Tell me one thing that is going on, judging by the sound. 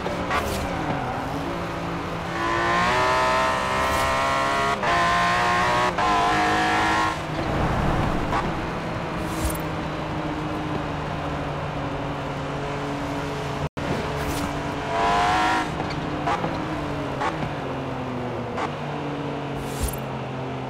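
A car engine roars steadily, revving up and down through gear changes.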